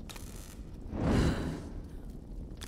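A paper poster bursts into flame with a whoosh.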